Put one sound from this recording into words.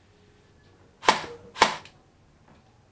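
A toy gun fires two sharp, loud shots close by.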